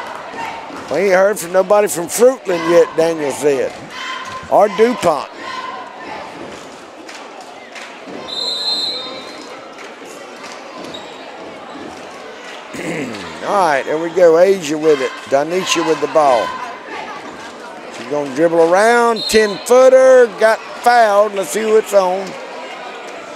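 Spectators close by shout and cheer loudly in a large echoing gym.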